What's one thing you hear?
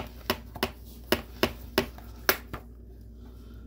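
An egg taps sharply against the rim of a bowl several times.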